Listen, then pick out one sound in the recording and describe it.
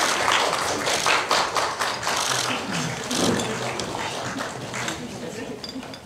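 Chairs shuffle and creak as people sit down.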